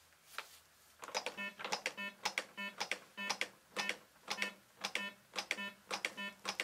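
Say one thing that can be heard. Hands press rhythmically on a training manikin, which clicks with each push.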